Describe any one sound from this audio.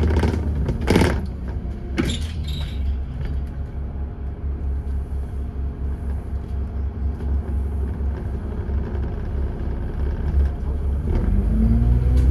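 Wind gusts and rumbles outdoors.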